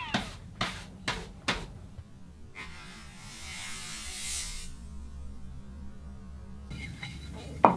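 A brush sweeps sawdust off a wooden bench.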